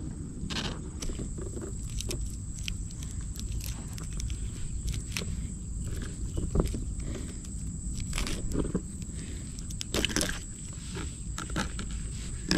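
A fishing line rustles and clicks as hands handle it.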